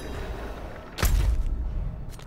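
A sharp menu click sounds.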